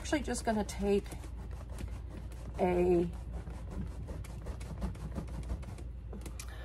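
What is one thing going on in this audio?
Hands rub and press softly on a leather bag.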